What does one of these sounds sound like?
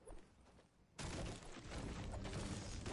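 A pickaxe strikes wood with dull knocks.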